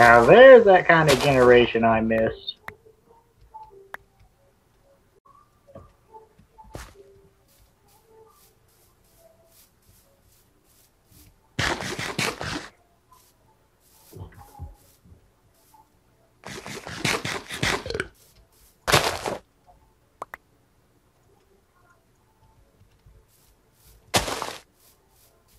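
Footsteps crunch on grass.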